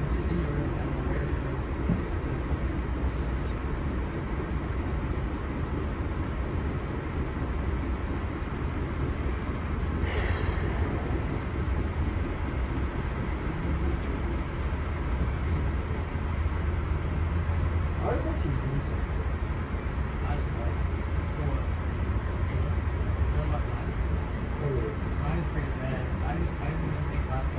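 A train rumbles and clatters steadily along the rails, heard from inside a moving carriage.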